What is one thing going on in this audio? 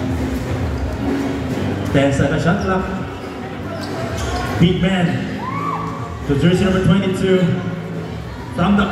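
A large crowd chatters and shouts in an echoing hall.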